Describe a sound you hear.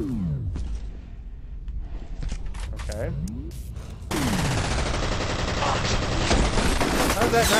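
An assault rifle fires in bursts in a video game.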